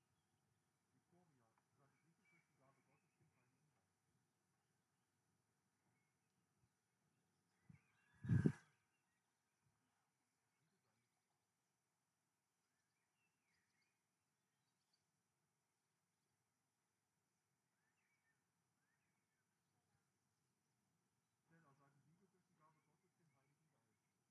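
A man speaks calmly through a loudspeaker at a distance, outdoors.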